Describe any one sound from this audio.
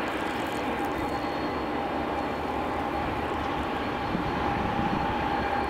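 A long freight train rumbles and clatters steadily along the tracks.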